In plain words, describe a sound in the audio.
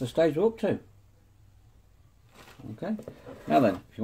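A cardboard box is set down on a table with a soft thud.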